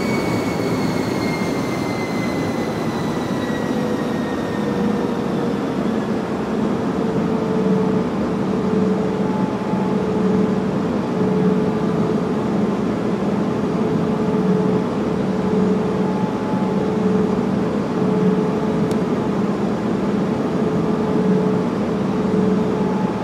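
Jet airliner engines drone and whine on approach, heard from inside the cockpit.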